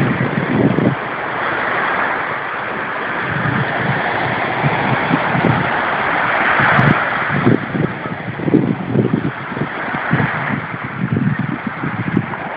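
Small waves break and wash onto a sandy beach.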